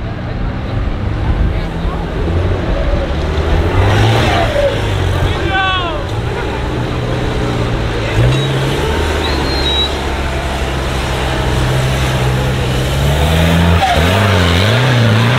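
An off-road truck engine roars and revs as it climbs a steep slope.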